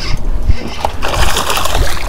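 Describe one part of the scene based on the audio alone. A hooked fish thrashes and splashes at the water's surface.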